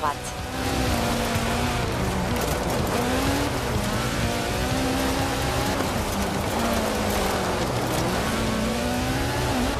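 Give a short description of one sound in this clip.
Tyres skid and crunch over a wet gravel road.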